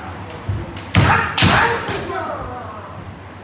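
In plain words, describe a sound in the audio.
A man shouts loudly as he lunges forward.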